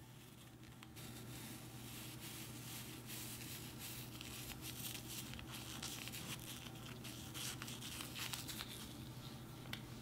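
Fingers crumble something dry, with a faint crackling close by.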